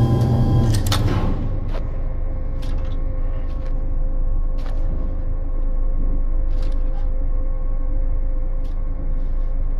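A machine hums low and steadily.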